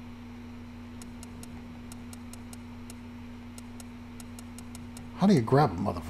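Soft electronic menu blips tick again and again.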